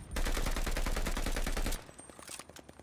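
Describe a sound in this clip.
Automatic gunfire rattles rapidly.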